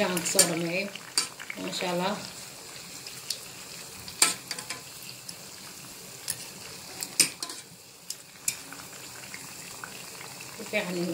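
Hot oil sizzles steadily with occasional sharp pops and crackles.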